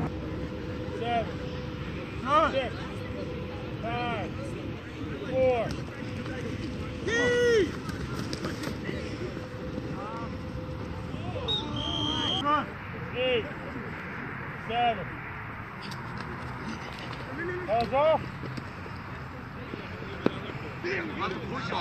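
Young men shout calls across an open field, some distance away.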